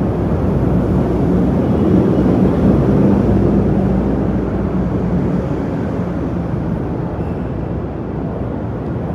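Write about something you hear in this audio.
A car engine drives slowly past close by.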